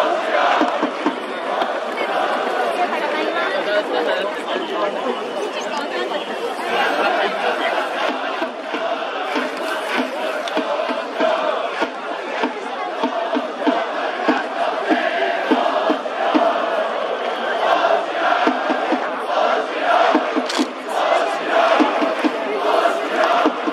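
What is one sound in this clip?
Many fans clap in rhythm with the chant.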